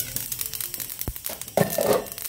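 A metal lid clanks against a pan.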